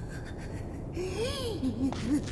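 A man groans and laughs in a low, strained voice.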